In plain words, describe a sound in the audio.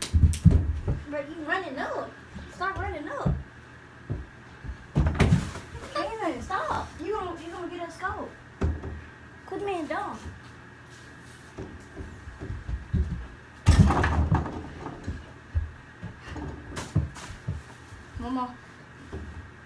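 Young boys talk and shout with animation.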